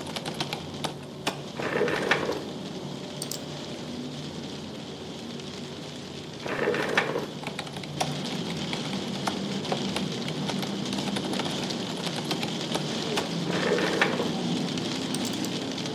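Keys clatter on a computer keyboard in quick bursts.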